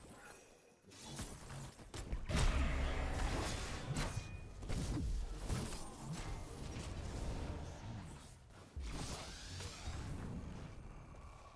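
Game spells and weapons blast and clash in a battle.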